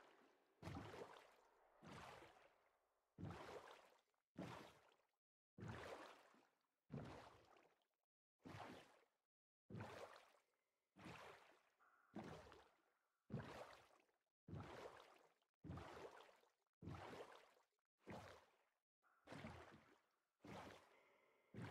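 Oars splash through water in a steady, repeating rhythm.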